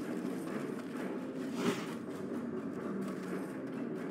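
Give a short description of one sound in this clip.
Magic spells crackle and whoosh as they are cast.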